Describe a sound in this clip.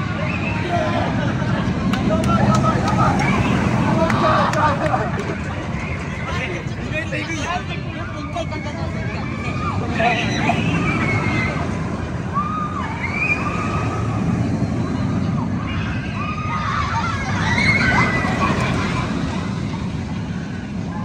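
A roller coaster train roars and rattles along its track.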